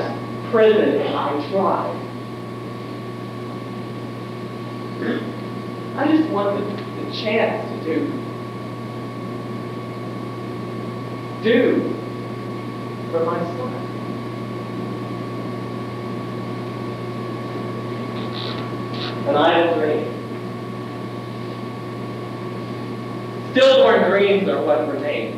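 Young men speak in bursts on a stage, heard from a distance in an echoing hall.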